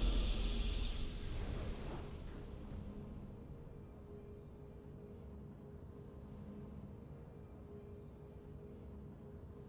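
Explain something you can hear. A triumphant victory tune plays softly in a video game.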